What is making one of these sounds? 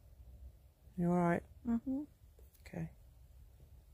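A woman speaks slowly and softly, close by.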